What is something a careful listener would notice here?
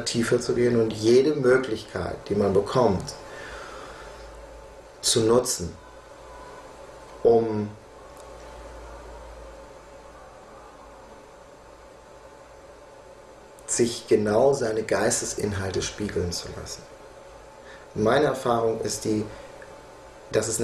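A middle-aged man speaks calmly and thoughtfully close to a microphone, pausing at length between phrases.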